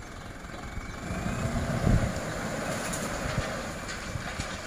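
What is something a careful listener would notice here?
A heavy diesel engine rumbles close by.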